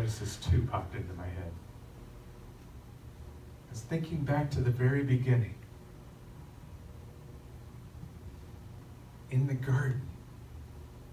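An elderly man speaks calmly through a microphone, pausing between phrases.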